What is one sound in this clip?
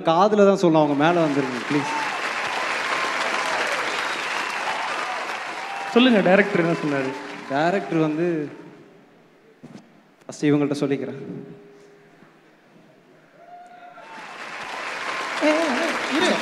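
An audience cheers and applauds.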